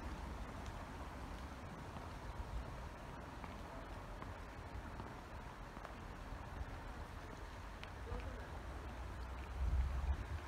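A shallow stream trickles softly outdoors.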